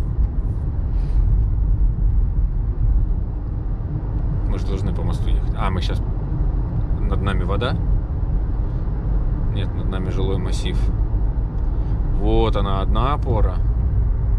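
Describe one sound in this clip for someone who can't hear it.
A car drives steadily with a low, constant road rumble.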